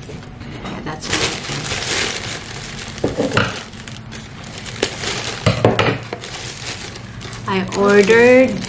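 A plastic bag crinkles and rustles as it is opened.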